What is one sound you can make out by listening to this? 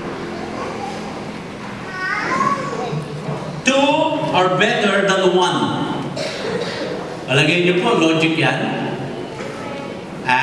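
A middle-aged man speaks through a microphone and loudspeakers, with animation, in a large echoing hall.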